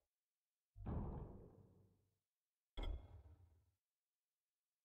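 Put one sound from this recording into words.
A game menu gives a deep booming whoosh as its pages change.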